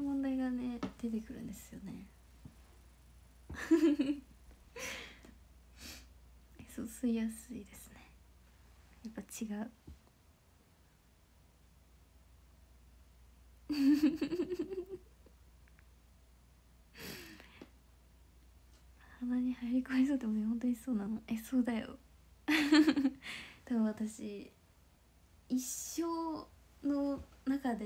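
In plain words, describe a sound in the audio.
A young woman talks cheerfully and closely into a microphone, with pauses.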